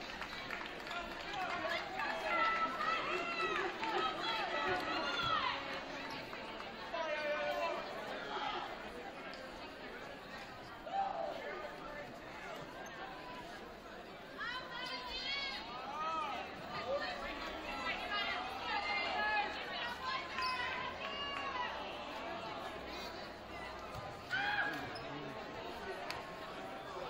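A crowd of spectators murmurs and cheers.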